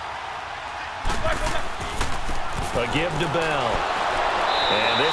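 Football players collide with thuds and pads cracking.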